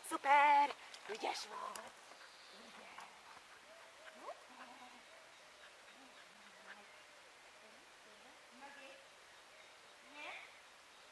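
A woman talks to a dog in a high, encouraging voice.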